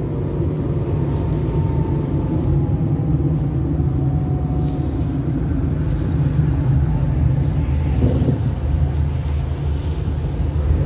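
Wind rumbles loudly against a moving car.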